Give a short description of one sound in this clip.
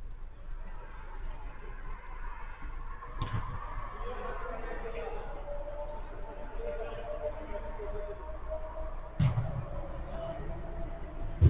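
Young men shout and call out at a distance in a large echoing hall.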